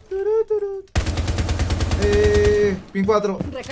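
A game rifle fires a rapid automatic burst.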